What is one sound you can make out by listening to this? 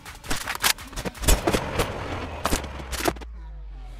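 Footsteps patter quickly on a wooden floor.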